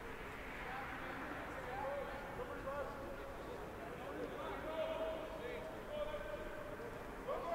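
A man calls out across an open field.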